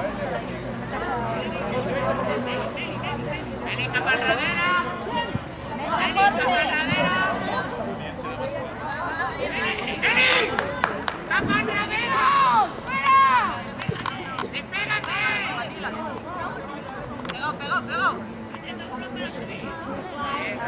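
Boys shout to each other across an open outdoor pitch.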